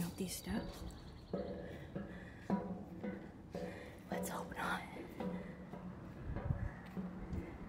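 Footsteps clang on metal stair treads, ringing slightly.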